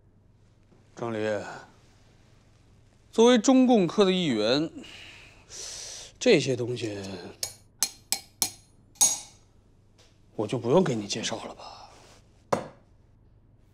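A man speaks calmly and coldly nearby.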